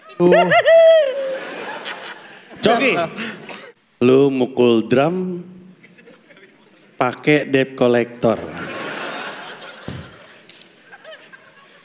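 An audience laughs in a large hall.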